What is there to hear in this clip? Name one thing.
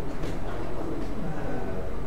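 A young man talks quietly close by.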